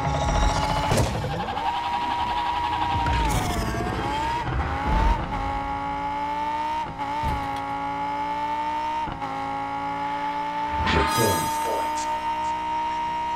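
A race car engine whines steadily at high speed, rising and dipping in pitch.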